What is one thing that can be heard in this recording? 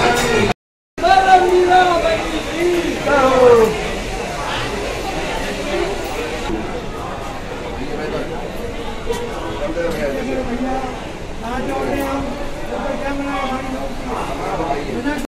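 A crowd of people murmurs and chatters nearby.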